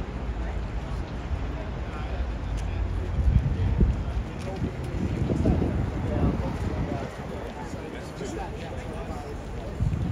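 Footsteps pass on paving stones.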